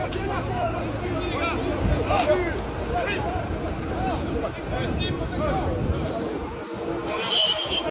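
A crowd of men shouts and jeers loudly outdoors.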